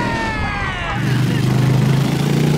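A motorcycle engine revs up loudly.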